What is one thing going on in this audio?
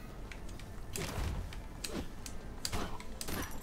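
A sword swishes through the air in quick slashes.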